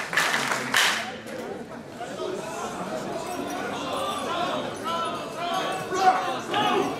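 A large crowd of men chants together loudly outdoors.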